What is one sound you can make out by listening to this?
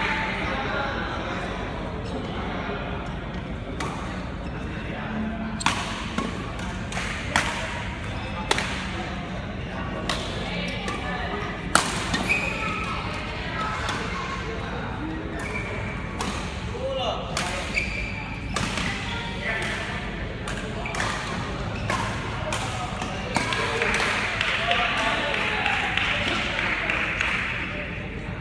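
Rackets smack shuttlecocks in sharp, quick hits in a large echoing hall.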